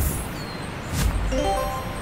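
A soft click sounds.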